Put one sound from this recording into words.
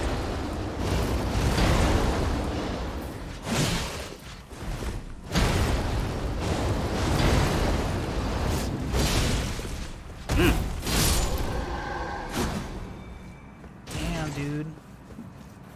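Swords clash and whoosh in loud, rapid blows.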